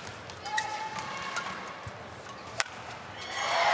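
A shuttlecock is struck sharply by rackets.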